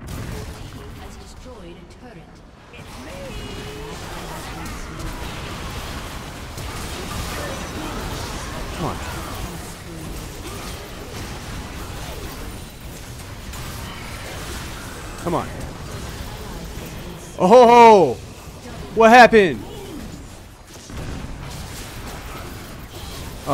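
Magic blasts crackle and whoosh in a fast fight.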